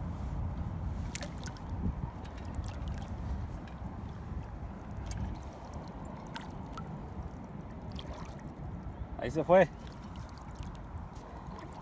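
Shallow water splashes and sloshes in a landing net.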